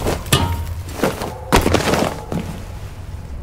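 A man climbs and lands with heavy thuds.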